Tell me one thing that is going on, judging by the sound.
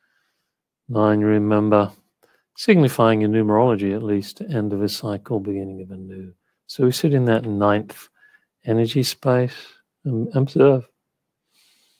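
An older man speaks calmly through a headset microphone on an online call.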